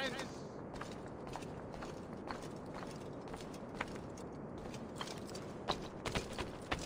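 Footsteps patter quickly across clay roof tiles.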